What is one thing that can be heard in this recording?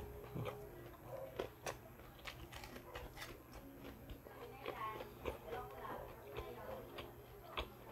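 A young man chews food noisily close to the microphone.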